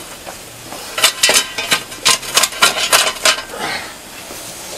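A metal shovel scrapes and clanks against stones.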